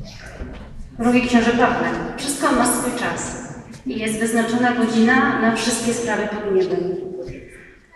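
A children's choir sings in a large echoing hall.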